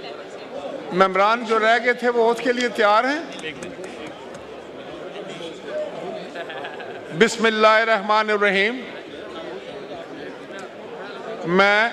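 An older man speaks into a microphone, reading out firmly over loudspeakers.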